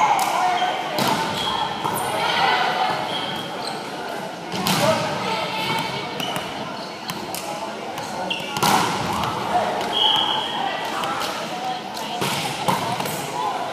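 A volleyball thumps against hands.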